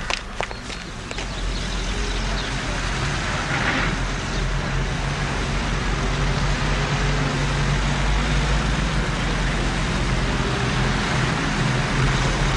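A truck engine rumbles steadily as the truck drives past close by.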